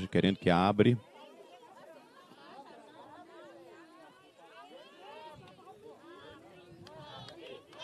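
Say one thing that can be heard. A crowd of people murmurs and talks quietly nearby.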